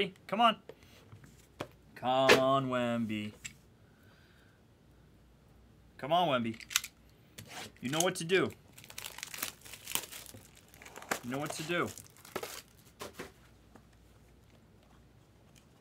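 Cardboard boxes slide and tap on a table.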